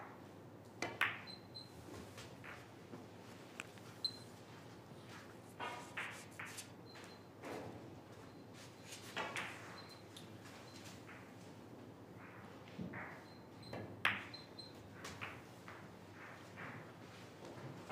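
Balls knock together and roll across the table.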